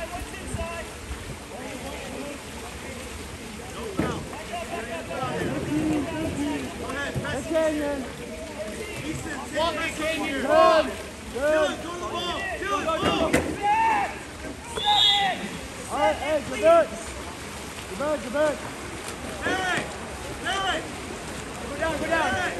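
Water splashes as swimmers thrash and kick.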